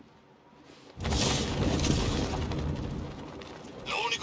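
Wind rushes loudly past while gliding through the air.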